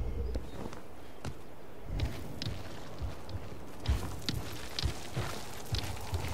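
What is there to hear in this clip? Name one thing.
Footsteps thud softly on stone.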